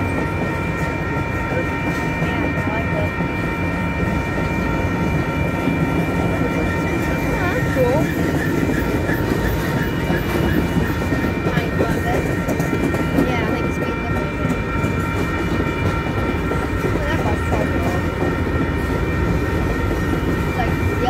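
A freight train rumbles past close by.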